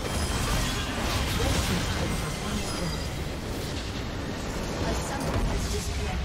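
Game spell effects crackle and explode in a battle.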